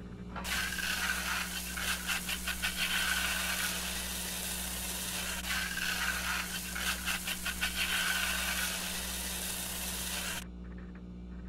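Water runs and splashes into a bathtub.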